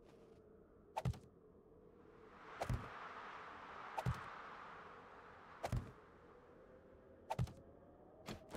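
Blocks thud into place one at a time.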